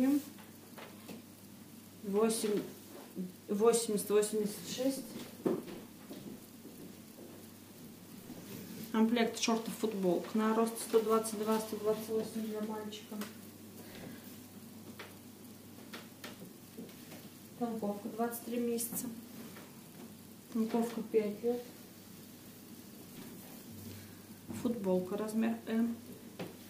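Cloth rustles softly as garments are handled and laid down.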